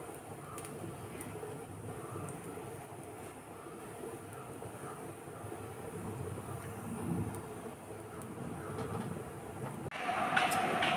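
A dosa sizzles softly in a hot pan.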